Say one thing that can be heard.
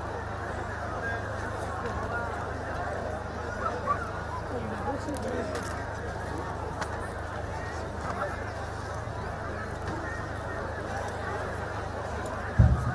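A crowd of men chatter and call out outdoors.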